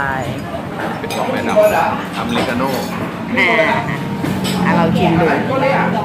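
A spoon clinks against a cup.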